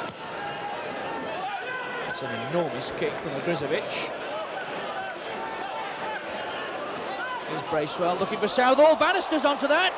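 A large stadium crowd murmurs and roars, growing louder toward the end.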